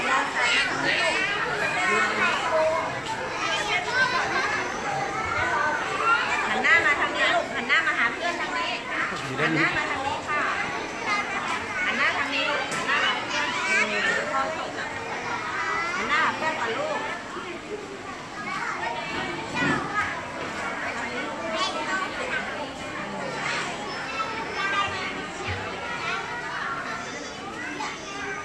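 Young children chatter and call out excitedly nearby.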